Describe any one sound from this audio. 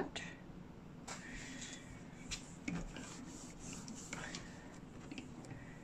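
A cloth rubs across a hard surface.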